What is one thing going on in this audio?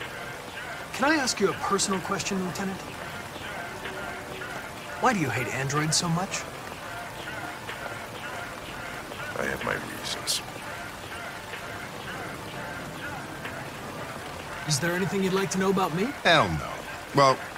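A younger man speaks calmly and politely.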